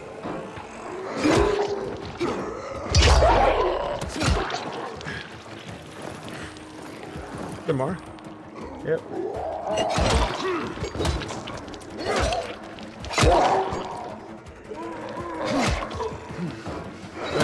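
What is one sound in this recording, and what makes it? A snarling creature growls and groans up close.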